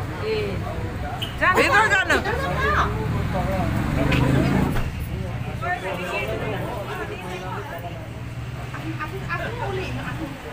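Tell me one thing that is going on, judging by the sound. Several people chatter outdoors.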